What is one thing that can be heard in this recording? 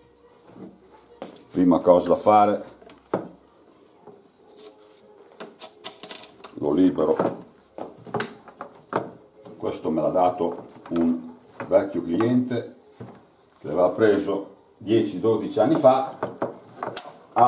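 Plastic equipment clicks and knocks as it is handled.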